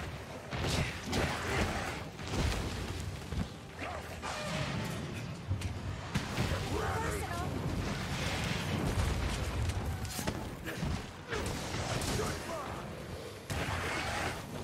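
Heavy impacts thud and rumble.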